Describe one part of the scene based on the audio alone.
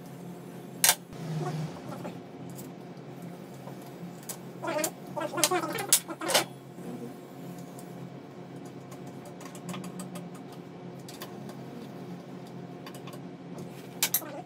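Metal tools clink and clatter against metal parts.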